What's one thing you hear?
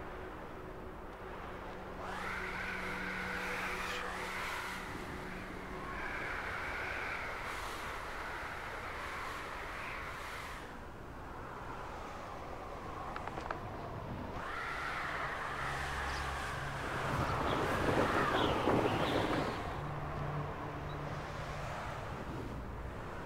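Wind rushes and whooshes past during fast flight.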